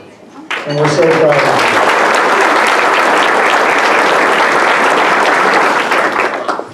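A crowd applauds loudly and steadily.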